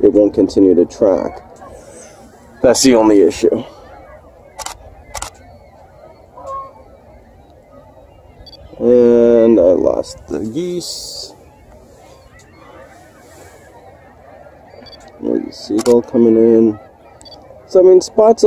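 Geese honk loudly as they fly overhead.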